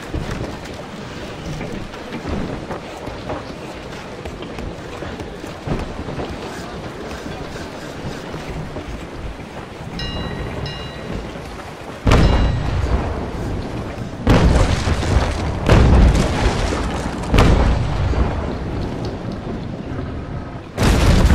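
Waves wash and rush steadily.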